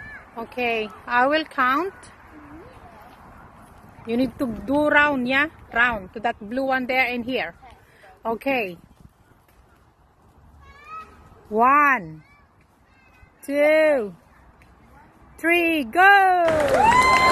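Young girls talk with animation outdoors.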